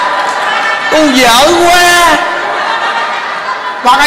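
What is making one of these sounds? A crowd of women laughs.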